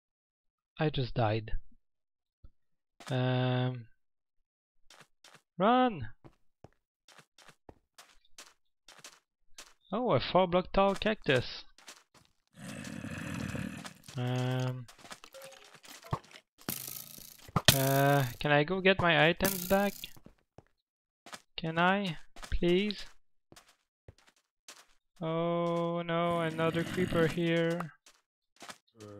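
Footsteps tap on hard stone.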